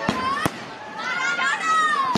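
A woman calls out in a high voice nearby.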